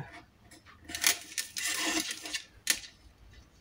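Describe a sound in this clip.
A stylus scrapes along paper.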